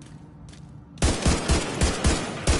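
Rapid gunshots ring out in bursts.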